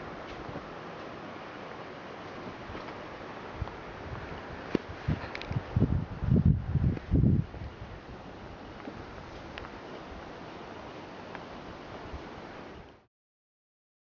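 Wind blows outdoors, gusting now and then.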